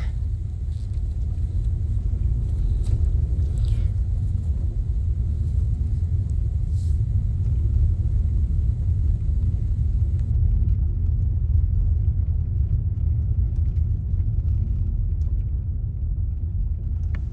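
A car engine rumbles steadily from inside the vehicle.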